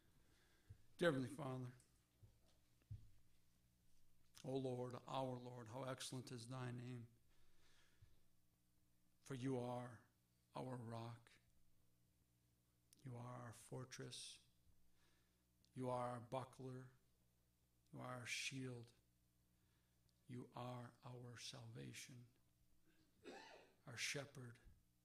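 A middle-aged man speaks slowly and deliberately into a microphone, with long pauses.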